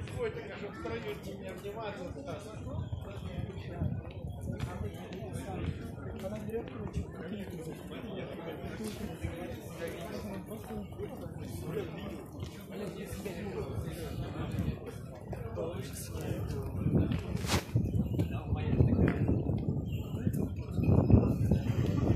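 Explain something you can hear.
Footsteps of a marching crowd shuffle on a paved road outdoors.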